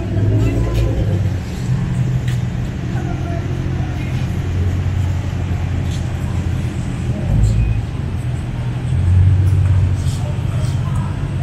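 A sports car engine idles with a deep, throbbing rumble, revving up now and then.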